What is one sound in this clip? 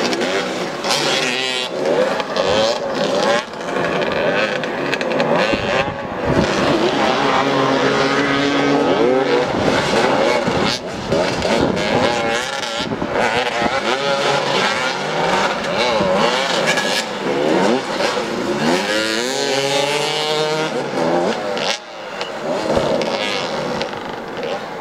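Motorcycle engines rev and roar nearby, rising and falling in pitch.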